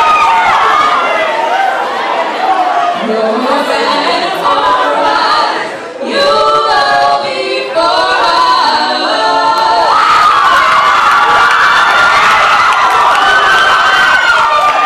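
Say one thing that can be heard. Young women sing together in harmony through microphones.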